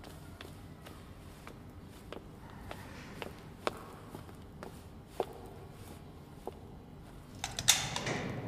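Footsteps tap slowly down a stairway.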